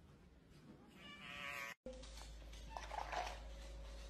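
A cat yowls close by.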